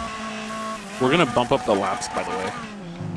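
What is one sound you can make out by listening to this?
A man talks excitedly, close to a microphone.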